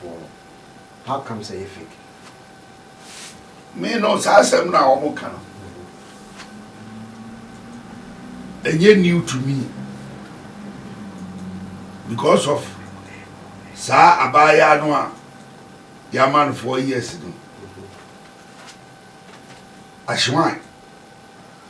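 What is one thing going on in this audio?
An elderly man speaks calmly in short phrases, close to a microphone.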